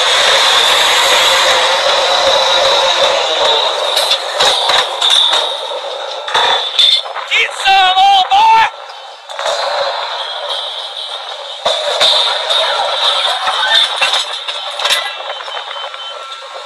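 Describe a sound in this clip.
Heavy metal clanks and bangs.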